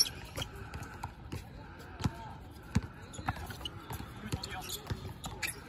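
A basketball bounces on an outdoor court with dull thumps.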